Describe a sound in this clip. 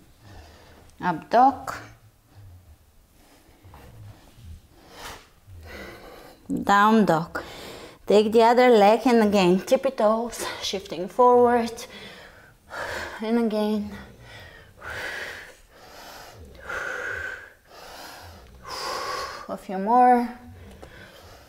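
A young woman speaks calmly, giving instructions.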